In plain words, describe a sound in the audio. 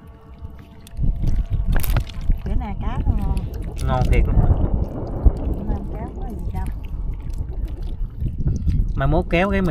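Hands rummage through wet fish in a plastic basket.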